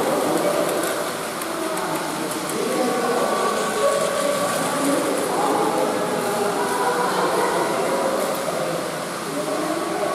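Children chatter and call out in a busy echoing hall.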